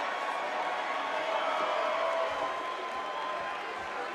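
A crowd cheers in a large echoing arena.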